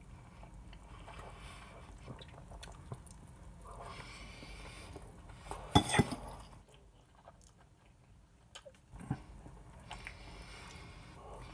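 A fork clinks against a plate.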